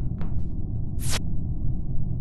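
A short electronic blip sounds as a game window pops open.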